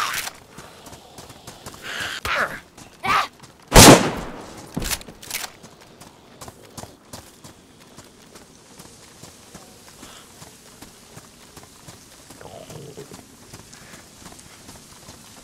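Footsteps run on a gravel path.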